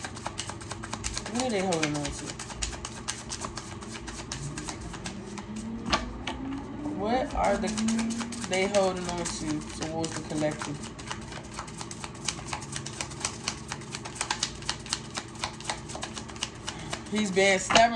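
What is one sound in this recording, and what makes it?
Cards riffle and flick quickly as they are shuffled.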